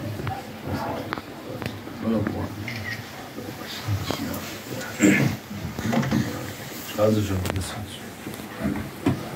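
An elderly man speaks calmly to a gathering.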